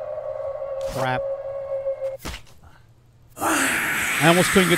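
An axe strikes a creature with a heavy thud.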